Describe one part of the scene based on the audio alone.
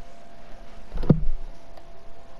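A ball is struck with a loud thump.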